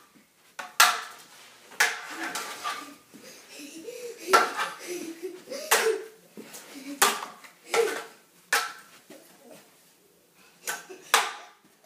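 Toy swords clack against each other.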